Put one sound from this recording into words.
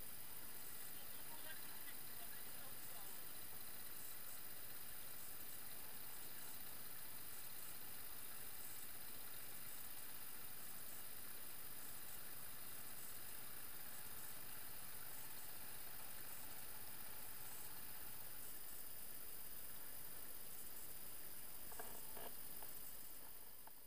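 Water trickles over stones in a small stream.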